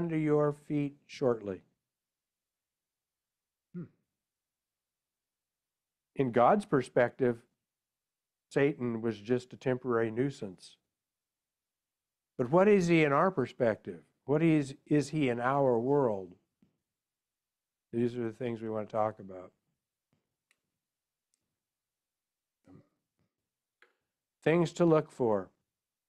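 A man speaks calmly over an online call, in phrases broken by pauses.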